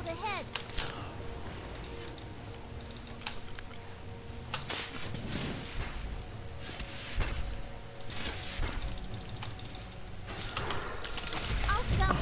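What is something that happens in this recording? Magic blasts and weapon hits crackle and thud in quick bursts.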